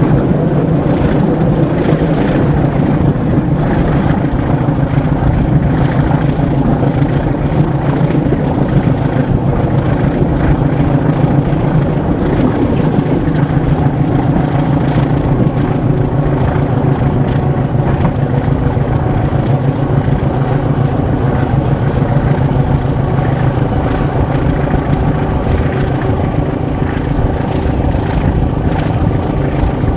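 Wind rushes past an open train window.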